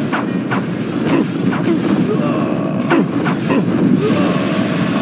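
Blades strike and clash in a short fight.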